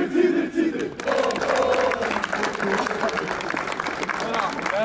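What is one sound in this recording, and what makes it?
A crowd of men cheers and shouts in the open air.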